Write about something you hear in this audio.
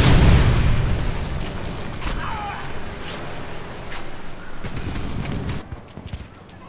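Gunshots fire in sharp bursts with loud booming blasts.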